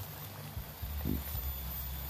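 Leaves rustle as a hand picks a mushroom from the ground.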